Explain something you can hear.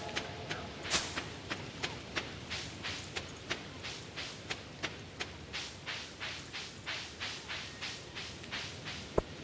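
Quick footsteps patter on dirt.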